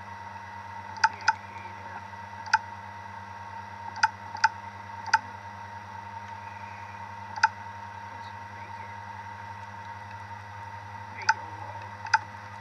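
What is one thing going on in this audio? A mouse clicks sharply, one click at a time.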